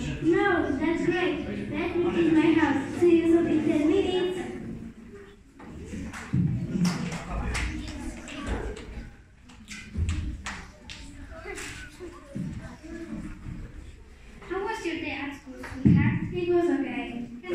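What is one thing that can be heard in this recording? A young girl sings into a microphone, heard through loudspeakers in a hall.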